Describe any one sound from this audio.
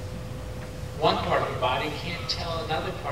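A man speaks clearly and close by.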